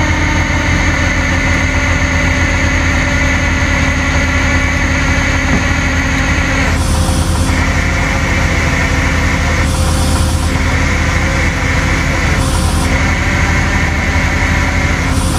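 A winch whines steadily as it drags a vehicle.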